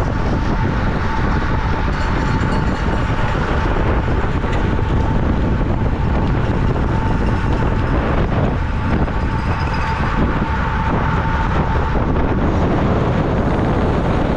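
Strong wind rushes loudly past a moving bicycle.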